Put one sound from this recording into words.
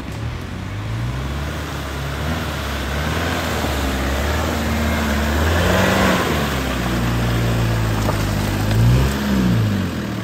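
Tall grass rustles and swishes as someone walks through it.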